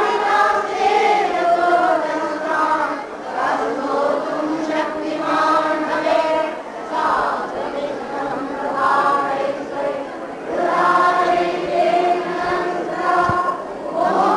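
An elderly woman sings slowly and steadily.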